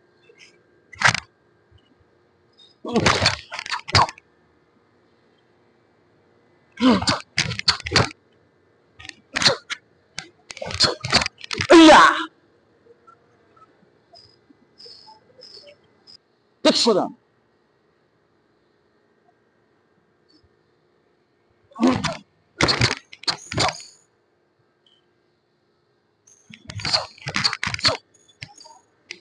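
A stiff cotton uniform snaps sharply with quick punches and blocks.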